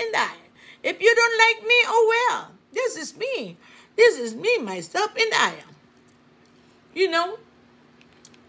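A middle-aged woman talks animatedly close to a microphone.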